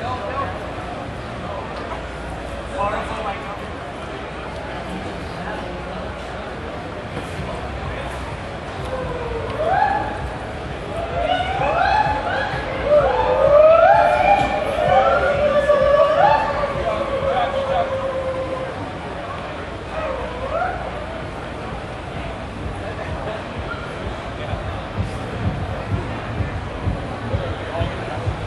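A crowd of people chatters in a large hall.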